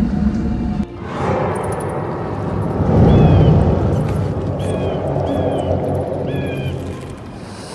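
A ghostly whoosh swells and fades.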